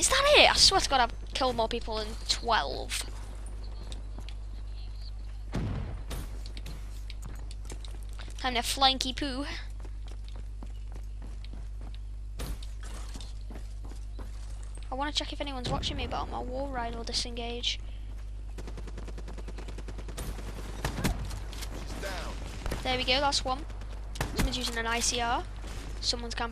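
A boy talks with animation into a close microphone.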